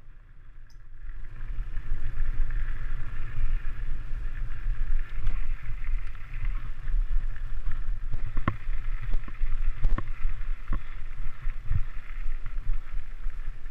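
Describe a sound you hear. Bicycle tyres rumble and rattle over a rough dirt trail.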